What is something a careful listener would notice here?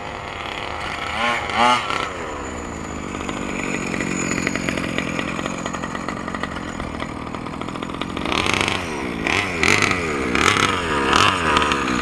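A two-stroke engine of a gas-powered 1/5-scale RC buggy revs up and down.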